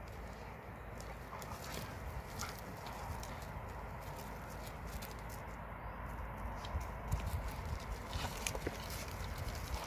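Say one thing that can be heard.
Dogs' paws crunch and scrape on loose gravel.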